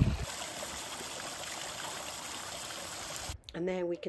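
A dog laps water from a small stream.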